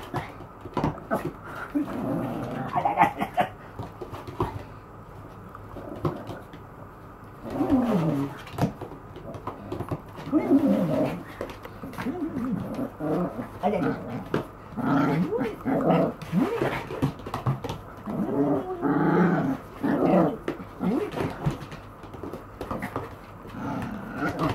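A small dog's claws patter on a hard floor.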